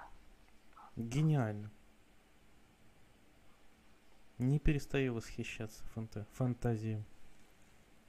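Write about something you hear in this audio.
A man speaks calmly through an online call, in short bursts.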